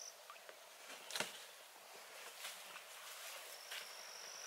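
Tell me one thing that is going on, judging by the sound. A boat scrapes against reeds at the bank.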